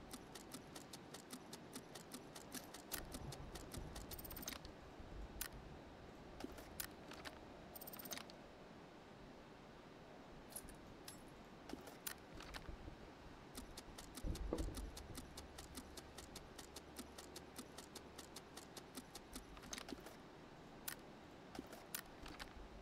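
Mouse buttons click quickly and repeatedly, close by.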